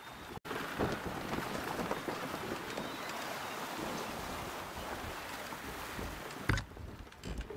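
Water laps and splashes against a small raft at sea.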